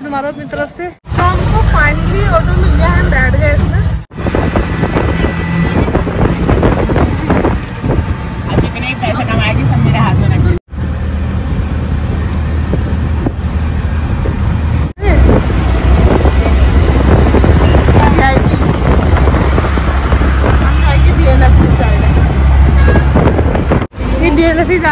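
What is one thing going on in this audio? An auto rickshaw engine rattles and hums loudly while driving.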